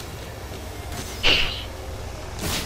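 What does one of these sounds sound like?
A burst of flame whooshes briefly.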